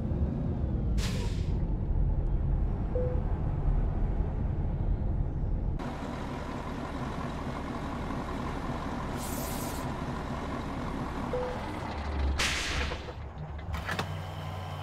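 A truck's diesel engine rumbles steadily as the truck drives.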